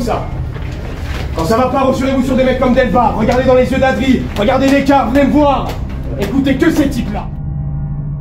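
A young man speaks loudly and with animation to a group.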